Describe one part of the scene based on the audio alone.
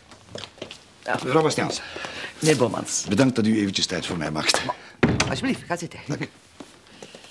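A man greets someone cheerfully, close by.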